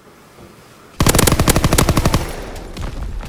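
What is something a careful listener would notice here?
A rifle fires in rapid bursts.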